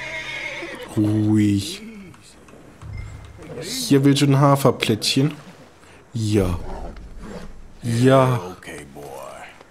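A man speaks calmly and softly to a horse close by.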